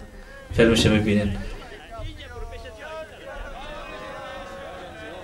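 A group of men talk and cheer outdoors.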